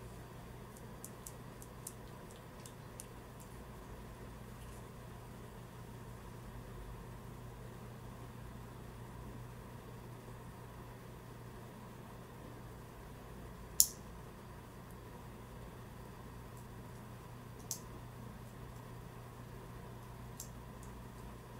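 Small plastic clicks and taps come from a hand mirror being handled close by.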